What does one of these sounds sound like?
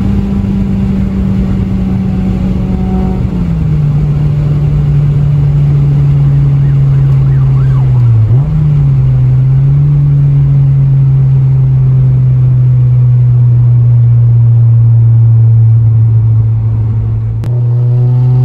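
A car engine drones steadily, dropping in pitch now and then.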